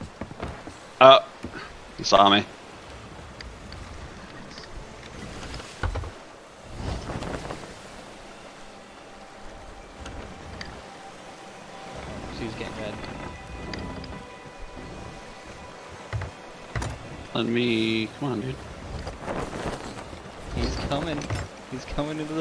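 Wind blows steadily over open water.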